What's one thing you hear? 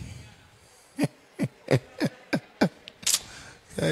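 A man laughs in short bursts through a microphone.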